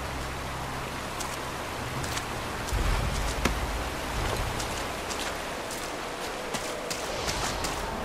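Water splashes and roars from a waterfall.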